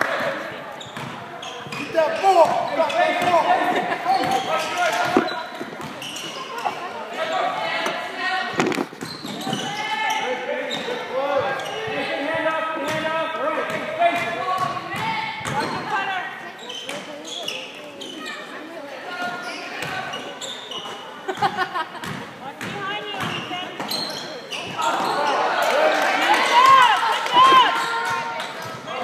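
Spectators talk and cheer in a large echoing gym.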